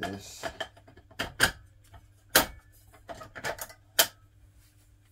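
Glass tubes click and knock as a hand fits them into their metal holders.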